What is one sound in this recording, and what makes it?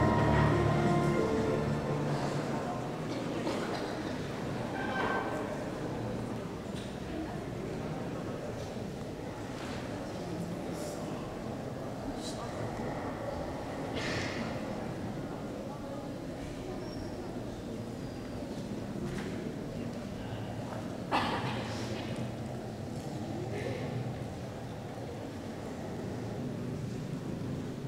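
An audience murmurs quietly in a large echoing hall.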